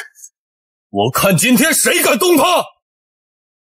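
A young man speaks sharply and threateningly.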